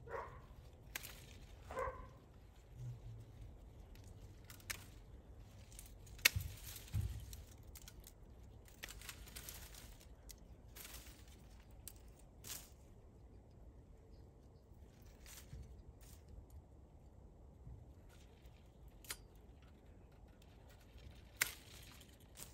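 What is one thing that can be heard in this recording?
Pruning shears snip sharply at stems.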